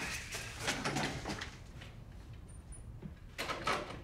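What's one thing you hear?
A door closes with a thud.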